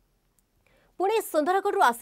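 A young woman reads out calmly into a microphone.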